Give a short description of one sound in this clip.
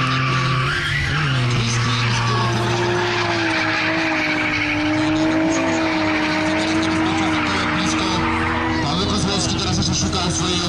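A crowd of spectators cheers outdoors.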